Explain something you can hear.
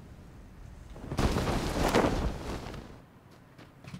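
Wind rushes loudly during a parachute descent.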